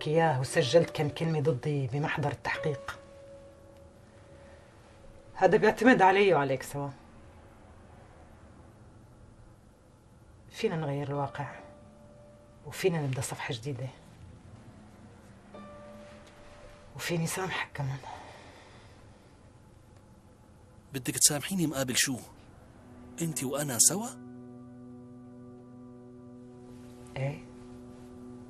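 A woman speaks calmly and quietly, close by, in short phrases with long pauses.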